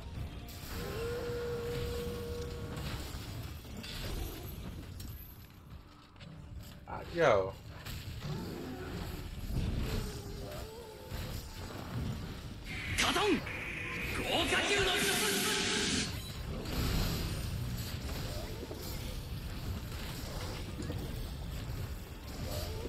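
Icy blasts crackle and burst.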